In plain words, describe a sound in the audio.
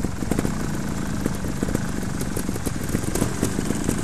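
Bicycle tyres roll over dirt as a rider passes close by.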